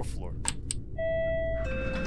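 An elevator bell chimes.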